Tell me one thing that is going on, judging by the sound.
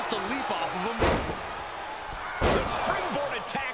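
Heavy bodies thud hard onto a wrestling mat.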